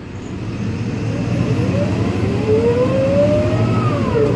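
A bus's drive whines, rising in pitch as the bus speeds up.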